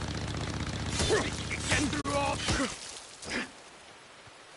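Heavy blows thud in a short, close struggle.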